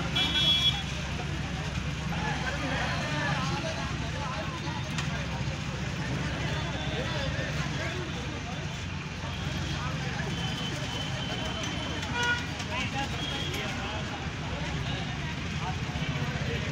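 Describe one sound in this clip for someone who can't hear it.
A large crowd of men talks and murmurs outdoors.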